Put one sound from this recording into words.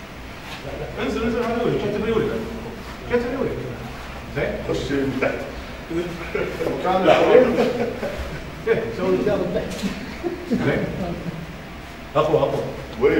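A group of men chant together in low voices, close by.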